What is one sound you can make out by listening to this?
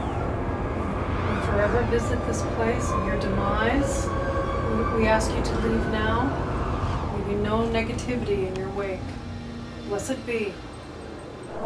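A woman speaks quietly and with interest, close by.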